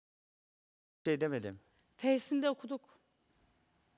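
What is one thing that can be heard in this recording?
A young man speaks emotionally into a microphone.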